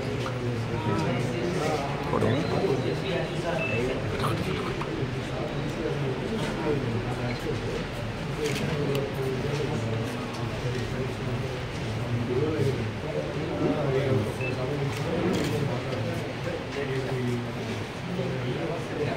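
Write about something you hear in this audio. Paper rustles as sheets are handled.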